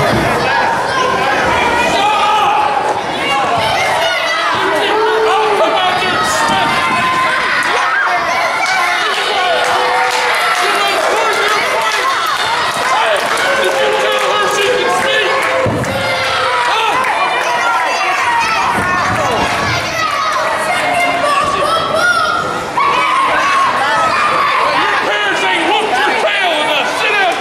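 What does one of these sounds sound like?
A crowd talks and shouts in a large echoing hall.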